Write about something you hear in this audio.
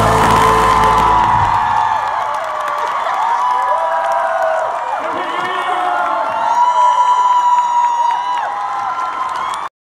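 A young man sings loudly through a microphone in a large echoing hall.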